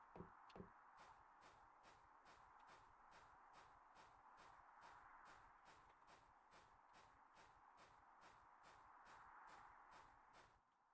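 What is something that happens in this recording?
Footsteps tap at a steady, even pace.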